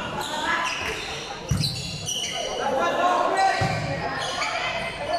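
Young people shout and cheer in a large echoing hall.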